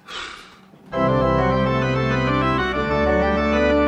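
A piano plays loud, full chords.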